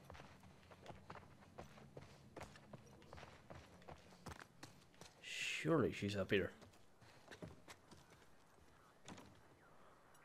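Footsteps tread quickly across a hard floor.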